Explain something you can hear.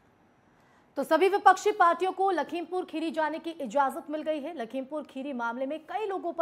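A young woman speaks clearly and briskly into a microphone, like a news presenter.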